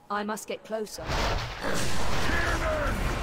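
Game sound effects burst and roar loudly.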